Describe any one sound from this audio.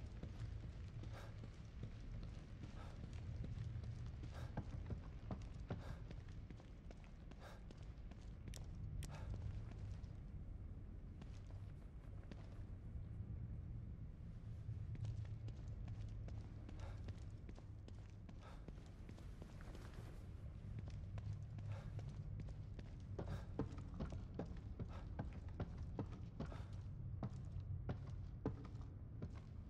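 Footsteps thud on a wooden floor at a walking pace.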